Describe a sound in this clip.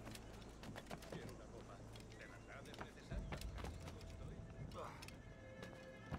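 Footsteps thud and scrape while climbing a wall.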